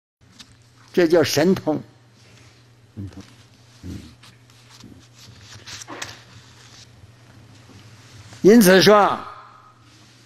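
An elderly man speaks slowly and calmly into a microphone, with pauses.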